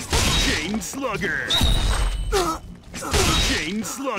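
A knife slashes through the air.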